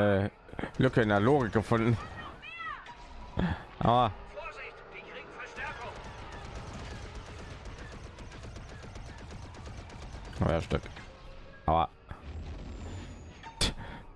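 Laser guns fire rapid shots.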